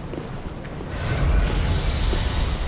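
A burst of fire roars loudly.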